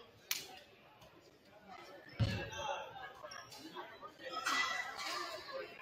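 Sneakers squeak on a hardwood court in an echoing gym.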